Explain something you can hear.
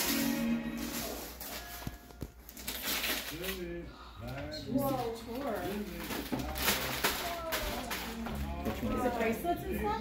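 Wrapping paper rustles and tears.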